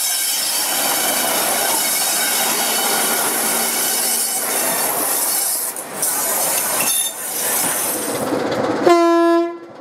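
Railway carriages roll past with a steady rumble and clatter.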